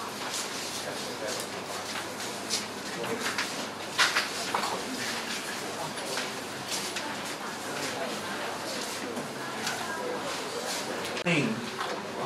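A crowd of people chatter and shuffle around in a room.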